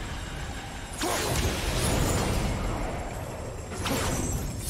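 A magical energy blast whooshes and crackles.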